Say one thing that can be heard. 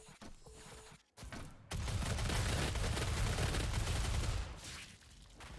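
A heavy gun fires a rapid, roaring burst of shots.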